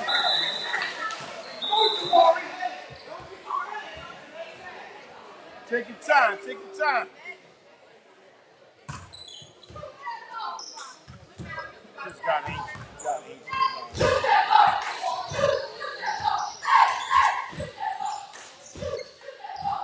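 A crowd of spectators chatters and cheers.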